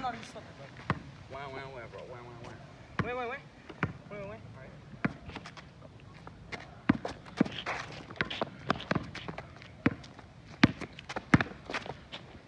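A basketball bounces on asphalt outdoors.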